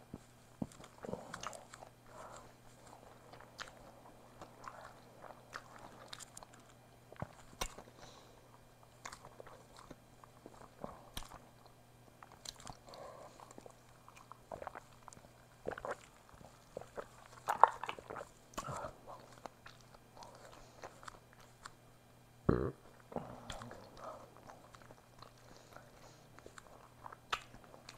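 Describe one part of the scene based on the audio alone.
A woman chews food with wet smacking sounds close to a microphone.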